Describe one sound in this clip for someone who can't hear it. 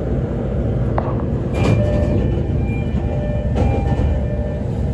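Train wheels clatter and knock on the rails.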